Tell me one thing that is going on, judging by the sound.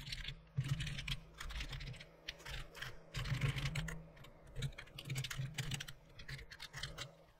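Keys click rapidly on a computer keyboard.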